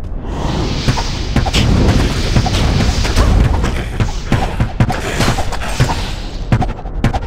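Fiery spells burst and crackle in a fight.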